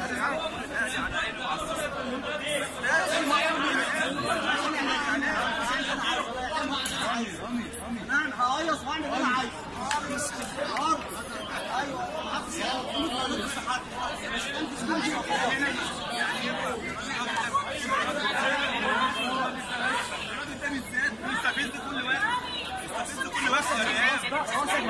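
Several men argue loudly, shouting over one another nearby.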